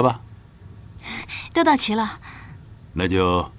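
A young woman speaks softly.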